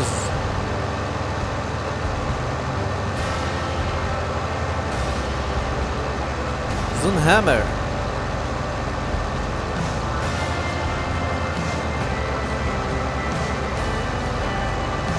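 A tractor engine rumbles steadily while driving.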